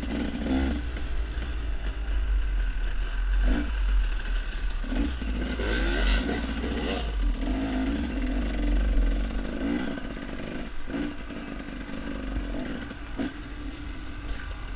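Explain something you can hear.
A dirt bike engine revs and sputters up close.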